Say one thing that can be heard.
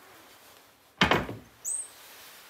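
A metal stove door clanks open.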